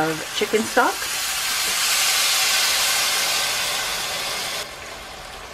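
Liquid pours into a hot pan with a hiss.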